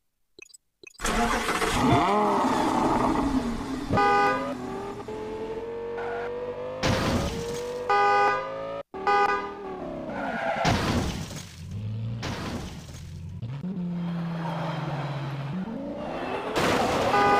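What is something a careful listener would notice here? A sports car engine roars and revs up and down as the car accelerates.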